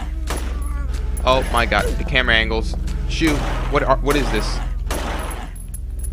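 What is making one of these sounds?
A pistol fires several sharp, loud shots.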